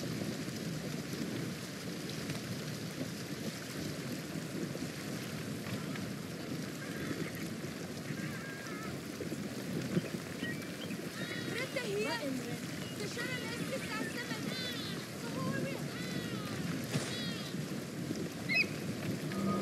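Water splashes and laps against a moving boat's hull.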